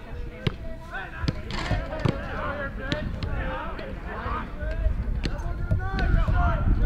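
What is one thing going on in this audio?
Several young men chatter and call out nearby outdoors.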